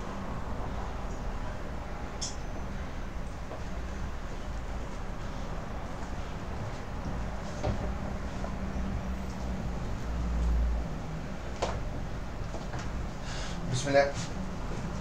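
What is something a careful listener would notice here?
Weight plates clink softly as a loaded bar is raised and lowered.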